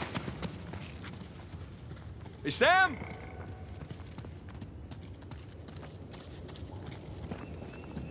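Footsteps run over soft ground.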